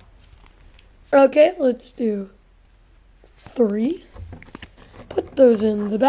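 Playing cards rustle and slide against each other as they are handled.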